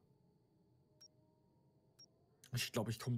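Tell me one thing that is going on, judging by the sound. A short electronic beep sounds once a second as a countdown ticks down.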